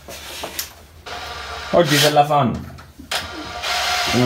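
An electric drill whirs in short bursts.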